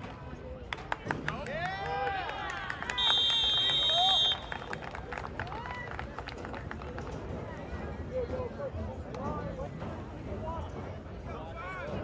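Young players and spectators shout and cheer outdoors.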